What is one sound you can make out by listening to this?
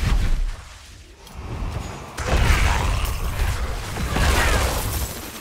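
Weapons swing and strike with sharp hits.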